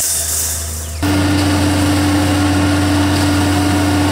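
A concrete mixer truck's diesel engine rumbles steadily nearby.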